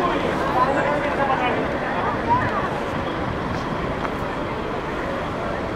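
Footsteps walk on a paved path.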